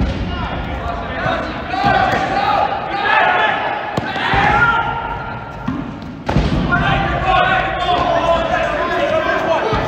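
A rubber ball thuds against a hard floor in a large echoing gym.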